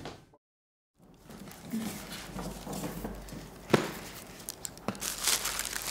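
Paper bags rustle and crinkle as they are handled.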